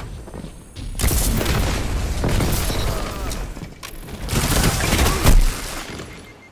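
Gunfire bursts out in loud rapid shots.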